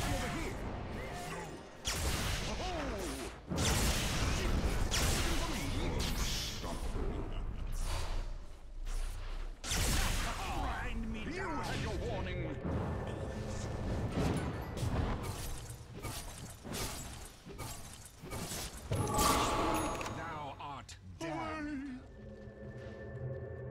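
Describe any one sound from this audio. Magic spells crackle and burst in a fast game battle.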